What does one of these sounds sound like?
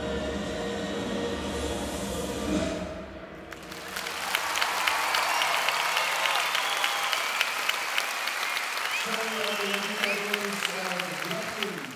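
Music plays loudly through loudspeakers in a large echoing hall.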